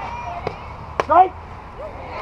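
A bat cracks against a softball.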